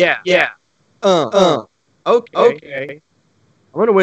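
A young man talks with animation over an online call.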